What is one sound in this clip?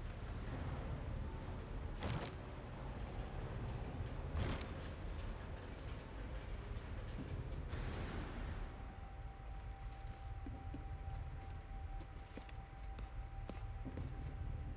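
Boots tread on wet ground.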